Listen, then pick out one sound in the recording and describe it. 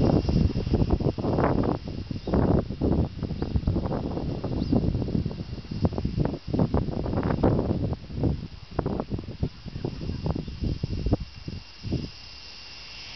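Wind gusts buffet the microphone outdoors.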